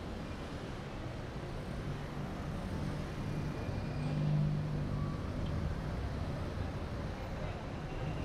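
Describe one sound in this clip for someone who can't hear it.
A bus engine hums as it idles at the curb.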